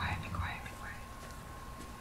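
A young woman speaks briefly and calmly into a close microphone.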